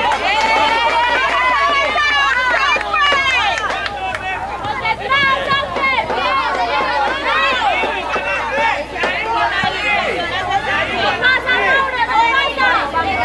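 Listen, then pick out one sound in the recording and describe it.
A crowd of children and adults shouts and cheers loudly nearby.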